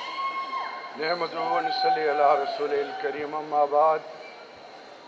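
A man speaks over a loudspeaker in a large echoing hall.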